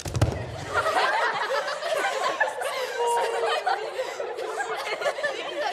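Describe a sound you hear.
Young girls laugh and chatter excitedly close by.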